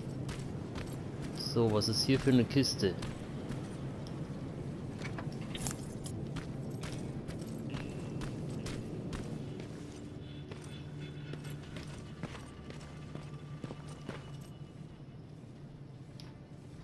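Footsteps splash and crunch on wet ground.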